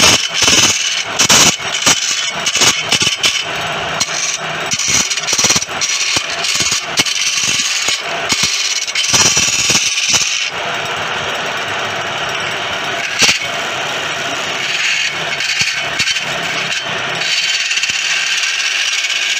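A chisel scrapes and chatters against spinning wood.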